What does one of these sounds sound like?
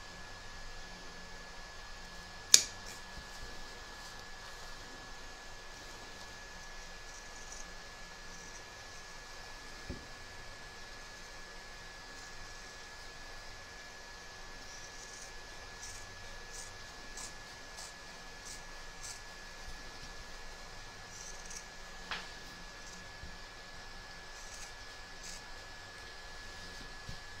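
Fabric rustles and crinkles as hands shift it.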